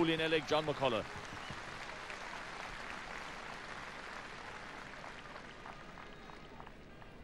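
A large crowd cheers and applauds outdoors in a stadium.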